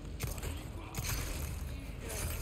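A heavy punch thuds.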